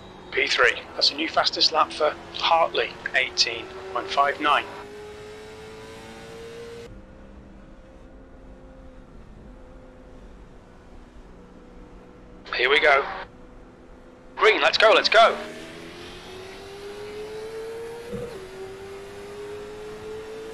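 A race car engine drones steadily, rising slowly in pitch as it speeds up.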